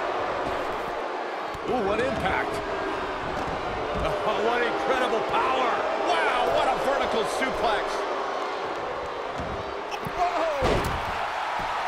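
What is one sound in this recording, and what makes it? Wrestlers' bodies slam onto the ring mat with heavy thuds.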